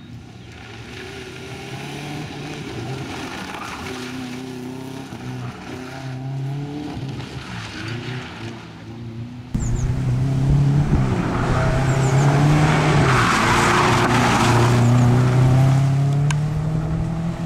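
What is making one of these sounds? A rally car engine revs hard, rising and falling as it speeds past.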